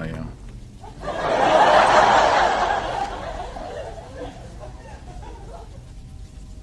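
A man laughs loudly through an online call.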